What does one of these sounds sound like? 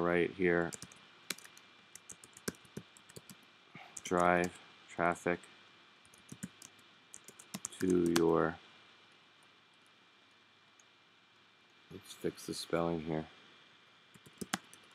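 Keys click on a computer keyboard as someone types.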